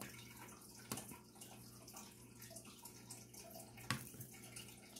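A pen taps softly on a plastic-covered canvas.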